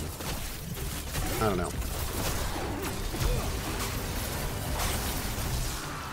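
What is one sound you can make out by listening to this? Magic spells crackle and zap in a video game.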